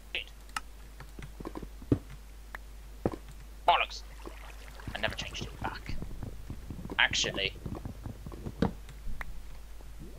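A pickaxe chips repeatedly at stone blocks.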